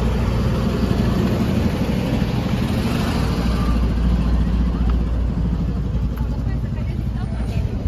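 Footsteps pass by on a pavement.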